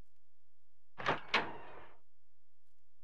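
A wooden door creaks open slowly.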